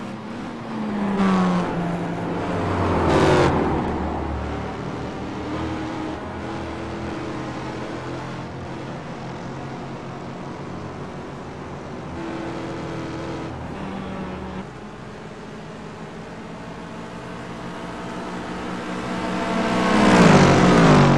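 Race cars roar past close by, rising and falling in pitch.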